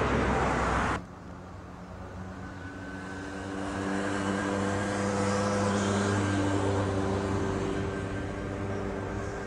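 A tram hums steadily nearby.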